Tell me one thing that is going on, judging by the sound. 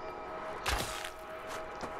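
A bowstring snaps as an arrow is loosed.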